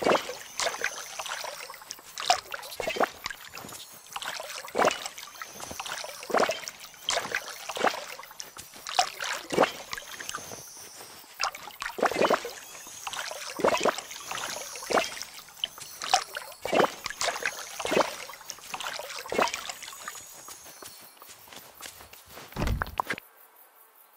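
Crops are plucked from soil with quick, bright popping chimes, again and again.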